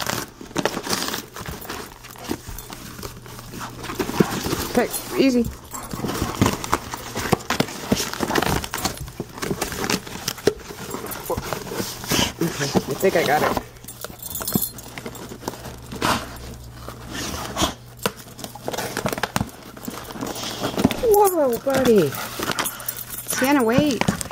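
Cardboard and paper rustle and tear close by.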